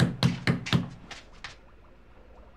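Knocks rap sharply on a door.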